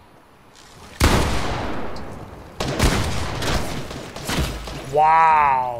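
A bow fires arrows with sharp twangs.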